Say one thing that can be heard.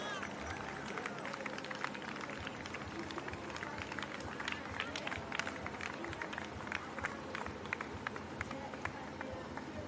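Spectators clap and cheer by the roadside.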